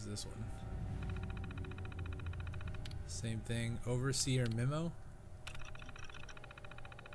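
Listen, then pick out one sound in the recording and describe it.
A computer terminal chirps and whirs.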